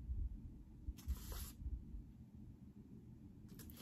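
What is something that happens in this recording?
Paper rustles as cards are handled.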